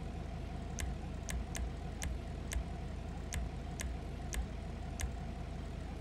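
Short electronic menu clicks tick one after another.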